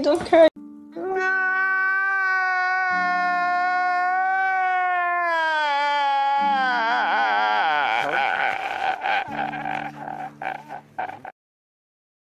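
A man wails and sobs loudly.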